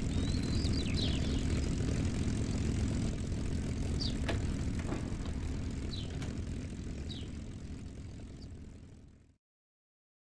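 A propeller aircraft engine drones steadily and fades out.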